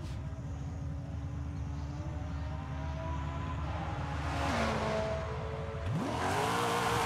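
A sports car engine idles and revs.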